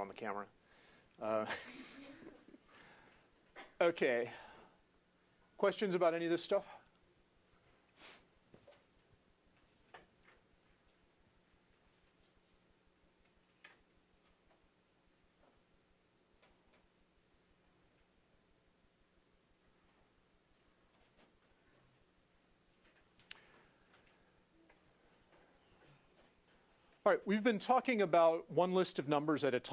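A middle-aged man speaks through a clip-on microphone in an echoing room, pausing at length.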